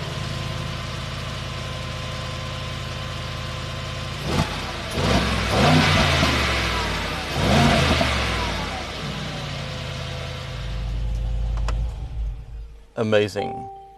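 An engine idles with a deep rumble, then revs loudly twice and settles.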